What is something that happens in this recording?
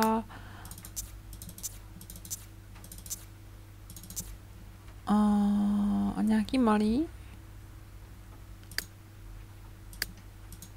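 Soft clicks sound as menu items are picked.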